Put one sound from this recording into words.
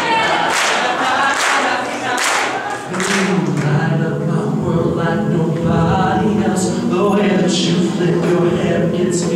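A young man sings lead into a microphone.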